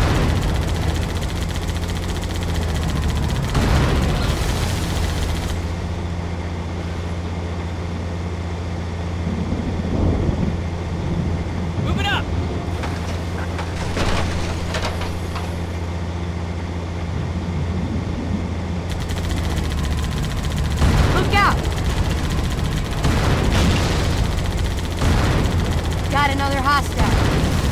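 Gunfire crackles and explosions burst.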